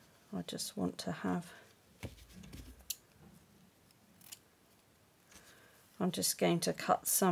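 A ribbon rustles as it is pulled.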